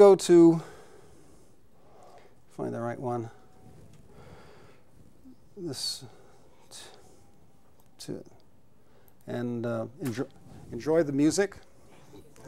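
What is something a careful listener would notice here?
A man speaks haltingly, in short phrases with pauses.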